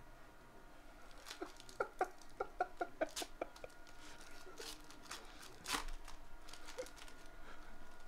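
A foil card wrapper crinkles and tears in someone's hands.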